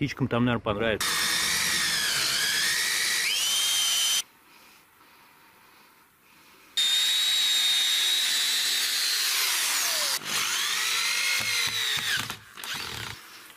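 A cordless drill whines as it bores into wood.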